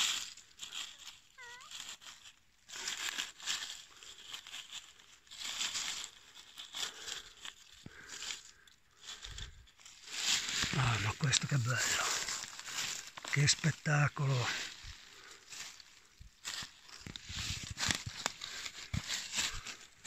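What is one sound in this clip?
Dry leaves rustle and crackle close by.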